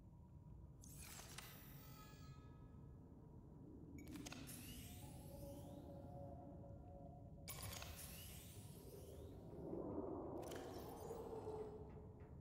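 A device gives short electronic whooshes and chimes.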